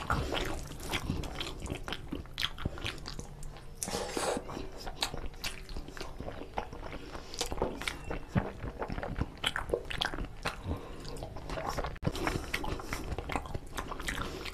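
Fingers squish and scoop rice on a metal plate.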